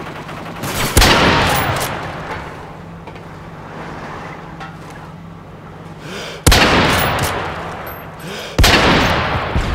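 A sniper rifle fires loud shots that echo and fade.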